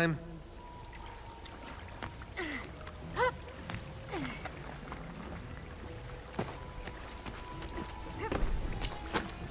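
Footsteps run across stone.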